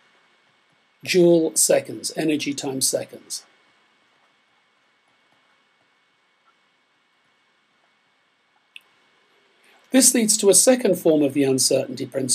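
An older man speaks calmly and closely into a microphone, with pauses.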